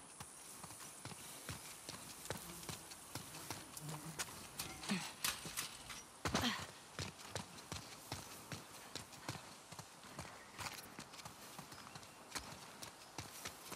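Quick footsteps run over grass and wet pavement.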